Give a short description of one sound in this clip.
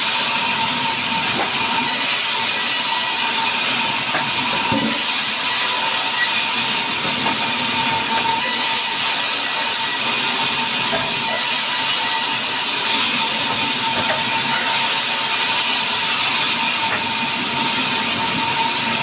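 A band saw runs loudly and cuts through wood with a steady high whine.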